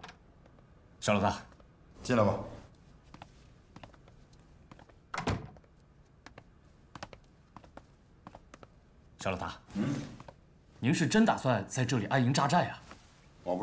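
A man speaks calmly at close range.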